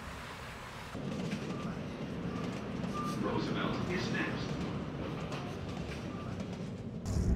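A train rumbles along its track.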